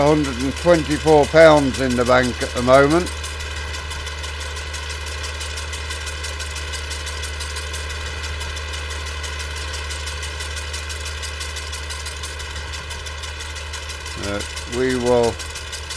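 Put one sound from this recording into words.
A mower whirs as it cuts grass.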